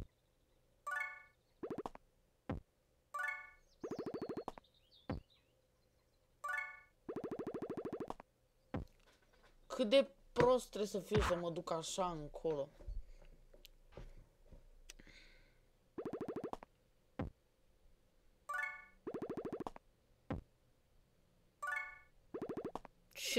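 A game's short electronic chime rings several times.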